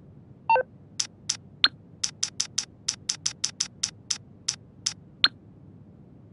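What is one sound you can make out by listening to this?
Quick electronic beeps tick as a phone menu is scrolled.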